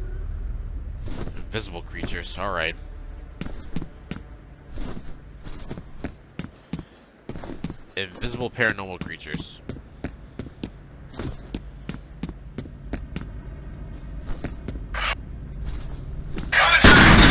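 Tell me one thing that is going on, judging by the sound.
Footsteps tap on a hard stone floor at a steady walking pace, echoing slightly.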